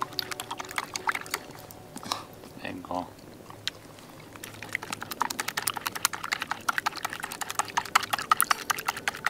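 A small wood fire crackles and pops close by.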